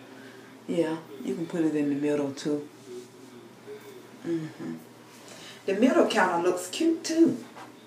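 A brush scrapes through hair.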